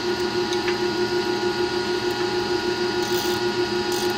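A metal hex key clicks against a bolt.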